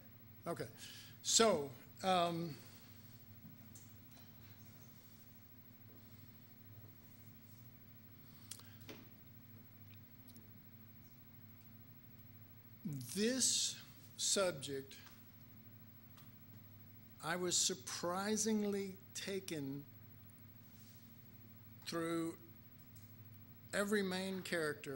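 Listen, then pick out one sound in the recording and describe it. A middle-aged man speaks into a microphone in short bursts, with long pauses.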